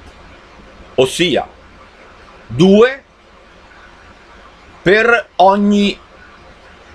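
An elderly man speaks calmly and close to a microphone, in short bursts.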